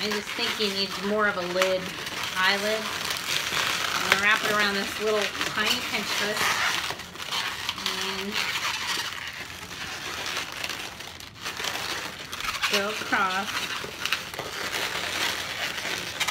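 Rubber balloons squeak and rub as they are twisted.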